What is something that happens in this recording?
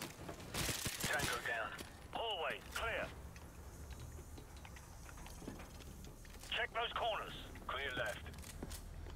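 A man talks into a microphone with animation, close by.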